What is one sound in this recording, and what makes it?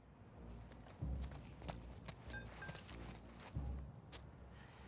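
Footsteps crunch over gritty rubble.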